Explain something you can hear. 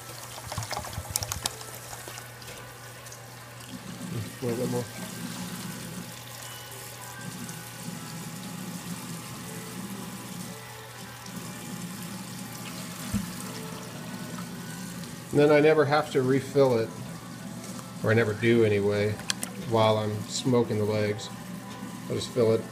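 Water pours from a bottle and splashes into a pan.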